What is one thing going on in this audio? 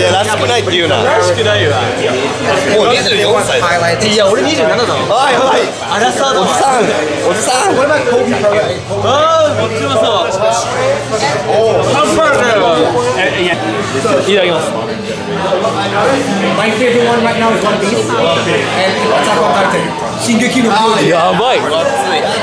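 A crowd chatters throughout in a busy, noisy room.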